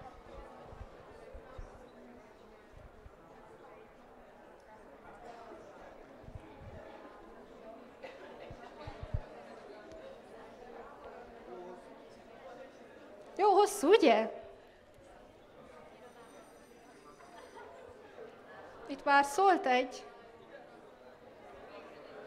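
A young woman speaks through a microphone in a lively way.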